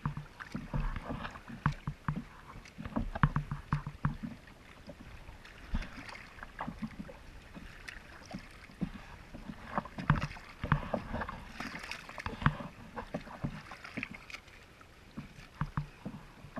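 Wind gusts across open water.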